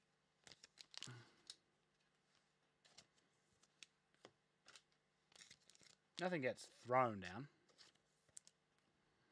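Cards and plastic wrappers rustle and click in hands.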